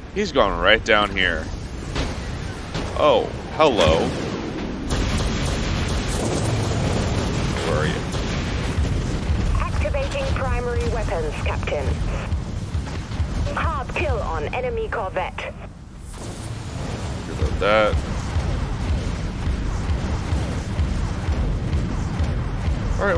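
A spaceship's engines rumble low and steadily.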